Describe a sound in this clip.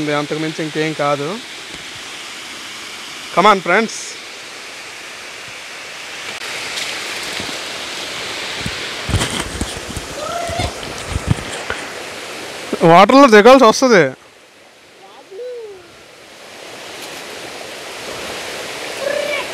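A stream of water trickles softly.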